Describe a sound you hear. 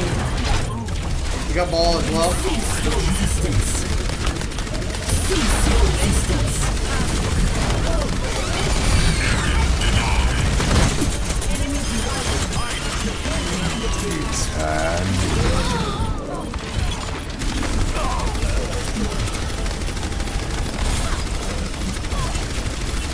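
Game guns fire energy shots rapidly.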